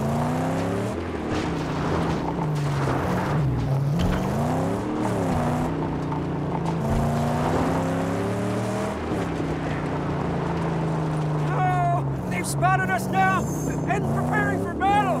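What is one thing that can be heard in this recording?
Tyres crunch and skid on gravel and sand.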